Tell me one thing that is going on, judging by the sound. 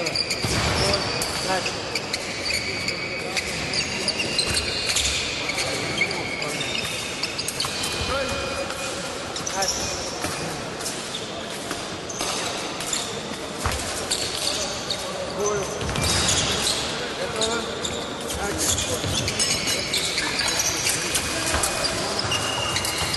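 Fencers' shoes squeak and scuff on the floor in a large echoing hall.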